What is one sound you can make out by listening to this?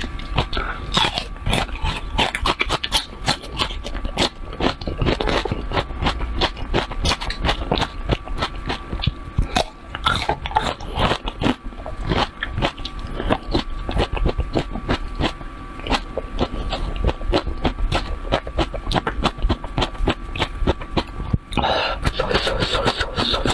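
A woman bites into food with a loud crunch.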